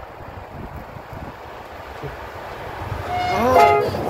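A train approaches with a growing rumble.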